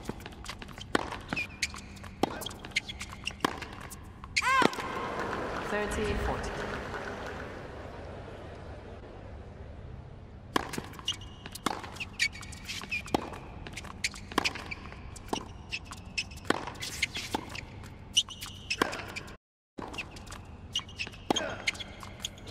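Tennis balls bounce and are struck sharply by rackets in a steady rally.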